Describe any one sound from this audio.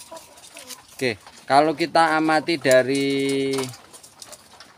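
Hens cluck and squawk loudly close by.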